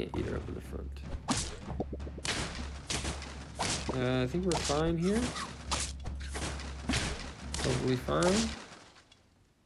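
Cartoon battle sound effects thump and clatter in quick bursts.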